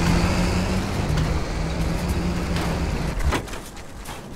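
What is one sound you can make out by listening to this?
A car engine roars loudly, then cuts out.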